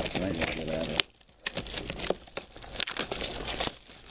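Plastic wrap crinkles as it is torn off a box.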